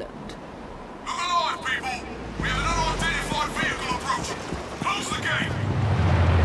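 A man shouts orders over a radio.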